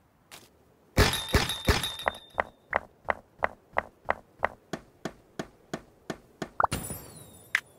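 A pickaxe chips rapidly at blocks in a game, with short sharp knocks.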